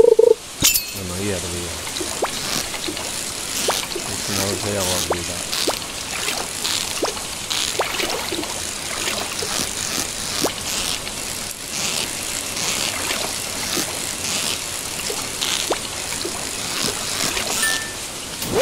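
A fishing reel clicks and whirs.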